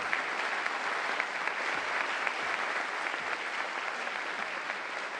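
A large crowd applauds steadily.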